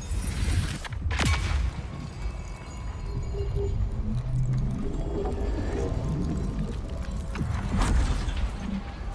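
A glowing energy burst shimmers and crackles, then fades.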